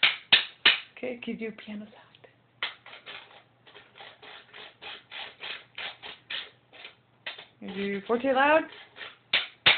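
A young boy speaks and squeals nearby.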